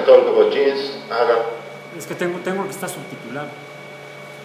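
A man speaks calmly through a loudspeaker.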